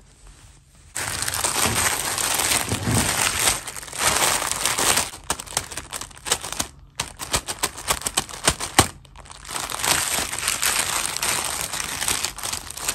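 A plastic bag crinkles loudly as hands press and rub it.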